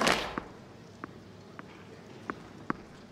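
A tennis ball bounces on the court several times.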